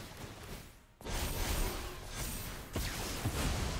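A magical shimmering whoosh swells.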